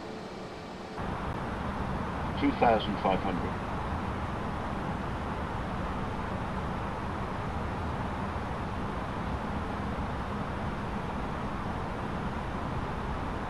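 A steady airflow hum fills a cockpit.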